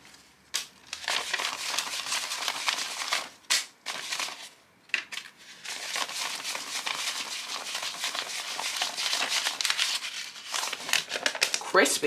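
Paper banknotes rustle and flap as they are counted.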